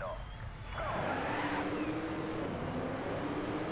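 Racing car engines roar as the cars pull away.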